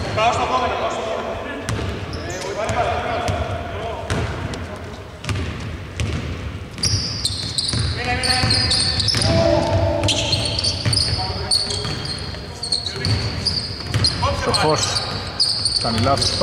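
Male players call out to each other.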